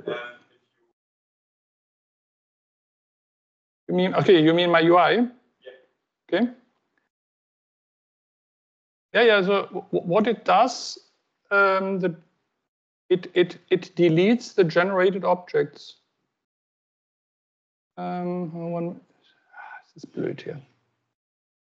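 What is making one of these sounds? A woman speaks calmly through an online call, in short bursts with pauses.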